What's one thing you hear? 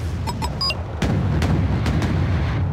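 Missiles launch with a sharp whoosh.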